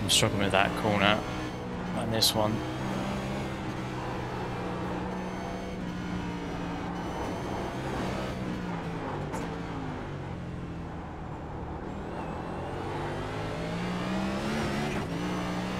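A racing car engine hums steadily and rises and falls in pitch as it shifts gears.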